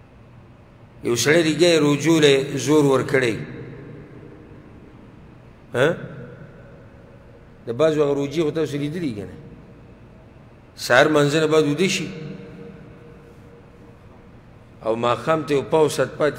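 A man speaks with animation in short bursts through a microphone.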